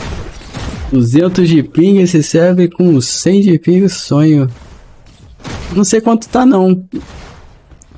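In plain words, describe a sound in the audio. An adult man talks with animation, close to a microphone.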